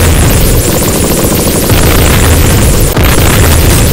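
An electronic explosion bursts.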